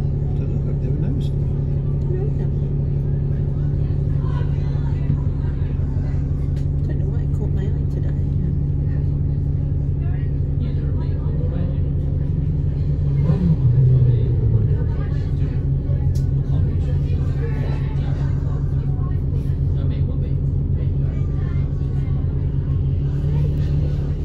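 A bus engine idles with a steady low rumble, heard from inside the bus.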